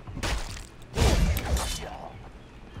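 A heavy blow lands with a dull thud and a rush of noise.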